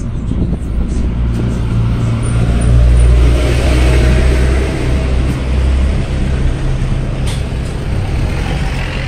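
A vehicle engine rumbles and idles nearby in the street.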